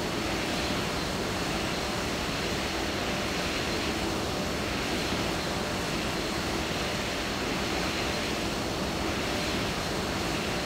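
The jet engines of a twin-engine airliner roar steadily in flight.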